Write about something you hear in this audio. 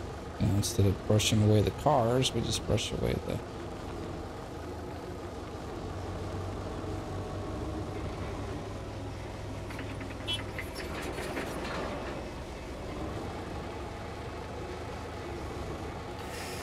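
A heavy machine's diesel engine rumbles steadily as it drives.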